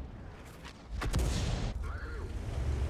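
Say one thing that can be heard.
A tank cannon fires with a loud boom.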